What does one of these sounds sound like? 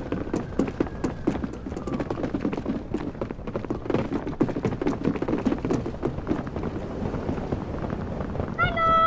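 Footsteps tap quickly on a hard floor.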